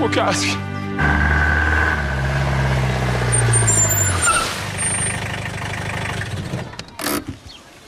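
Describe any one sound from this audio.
A car engine idles and revs.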